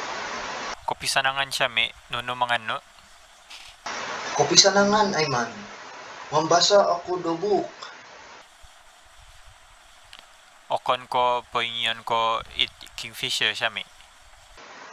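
A young man talks into a phone close by, with animation.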